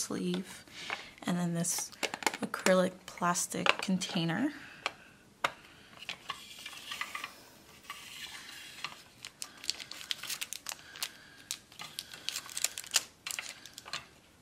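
Plastic clicks and rattles as a case is opened and handled.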